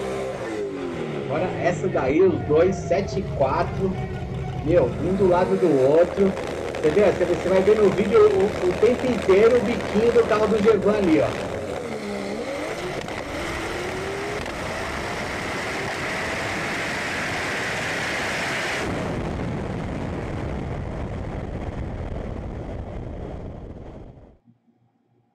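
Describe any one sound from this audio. A drag racing car's engine roars loudly.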